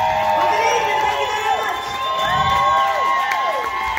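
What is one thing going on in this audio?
A woman sings into a microphone, heard loudly through speakers.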